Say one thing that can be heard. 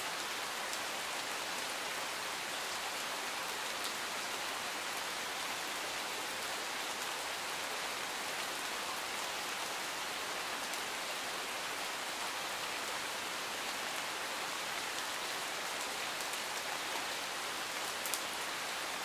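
Steady rain patters on leaves and gravel outdoors.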